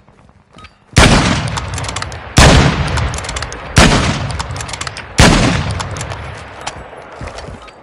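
A rifle fires several loud shots that ring out and fade.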